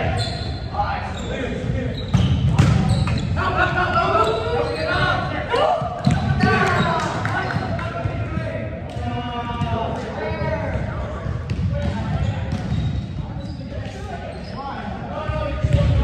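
Young men call out and talk in a large echoing hall.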